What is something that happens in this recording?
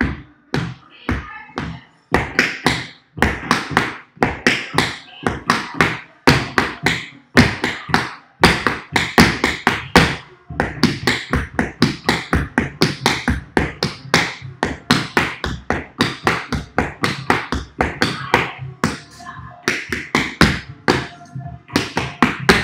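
Tap shoes click and strike rapidly in rhythm on a hard board.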